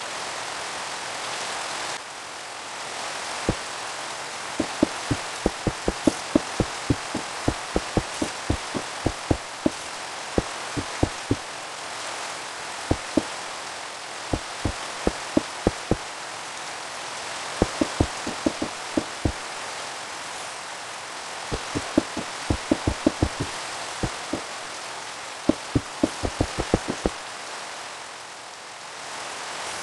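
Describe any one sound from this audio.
Rain falls steadily in a video game.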